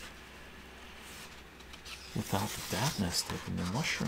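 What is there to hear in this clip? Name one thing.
Paper rustles as a page turns.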